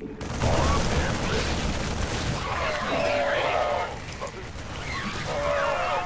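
Rapid gunfire crackles in a game battle.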